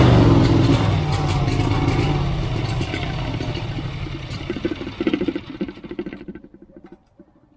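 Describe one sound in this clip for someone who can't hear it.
A lawnmower engine runs roughly and sputters to a stop.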